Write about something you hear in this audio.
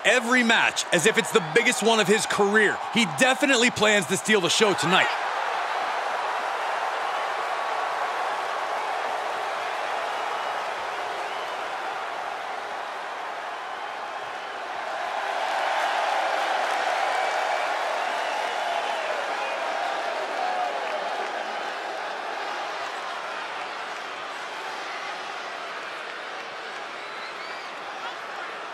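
A large crowd cheers and roars steadily in a big echoing hall.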